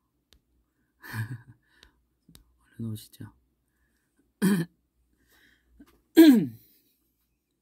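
A young man laughs softly close to a microphone.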